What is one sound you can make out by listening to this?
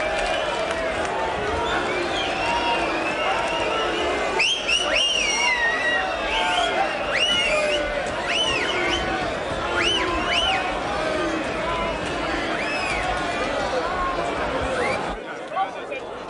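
A crowd of men and women shouts and clamours excitedly nearby.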